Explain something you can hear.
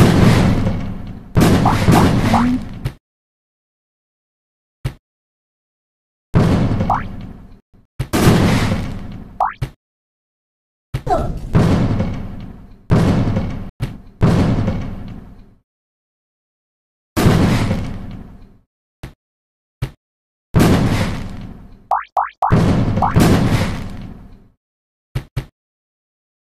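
Cartoon bombs explode with loud booming blasts that quickly fade.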